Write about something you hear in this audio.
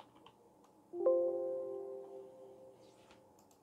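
A computer alert chime sounds once.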